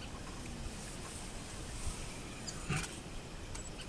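A lion settles heavily onto sand.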